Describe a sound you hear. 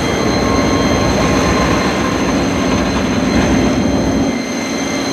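Diesel locomotive engines rumble loudly close by.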